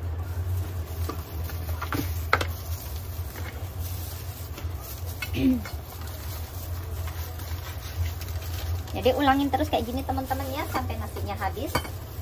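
Dry seaweed sheets crinkle and rustle in gloved hands.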